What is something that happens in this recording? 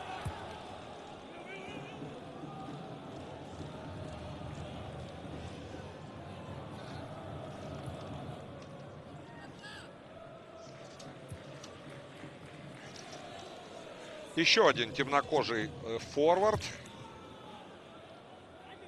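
A large stadium crowd murmurs and chants steadily in the background.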